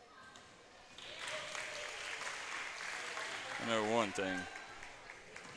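A crowd cheers and claps in an echoing gym.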